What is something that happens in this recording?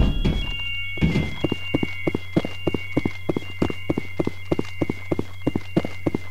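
Heavy boots run quickly across a metal floor.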